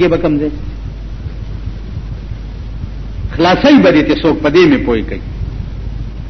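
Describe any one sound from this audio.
An elderly man speaks slowly and forcefully into a microphone.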